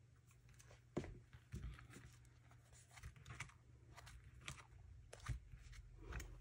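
A sheet of card slides and rustles on a cutting mat.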